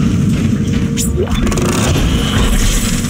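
A metal crate is stomped and crashes open.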